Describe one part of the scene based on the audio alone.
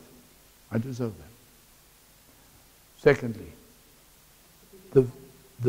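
A middle-aged man speaks animatedly in short bursts.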